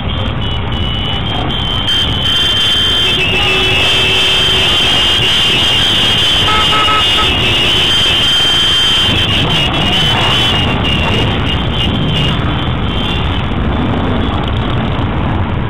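Many motorcycle engines idle and rumble close by.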